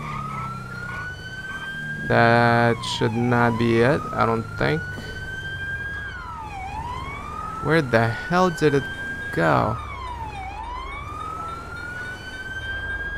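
A siren wails steadily, rising and falling in long sweeps.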